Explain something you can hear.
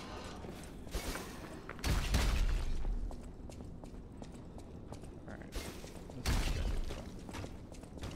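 Footsteps thud on a wooden walkway.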